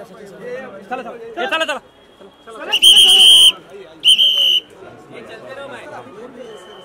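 A crowd of men and women chatter and call out close by, outdoors.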